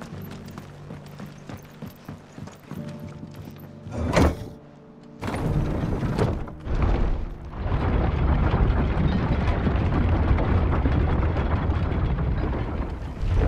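Footsteps thud on creaking wooden boards.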